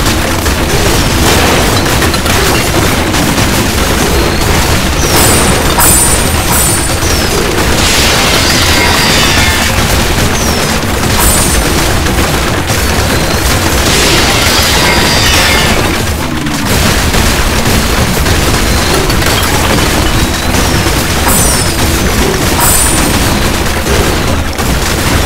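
Rapid gunfire and small explosions pop in a video game.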